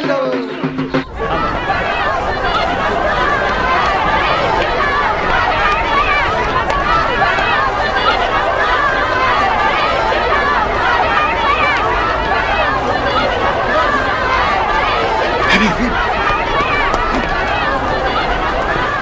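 A large crowd of men and women murmurs and shouts.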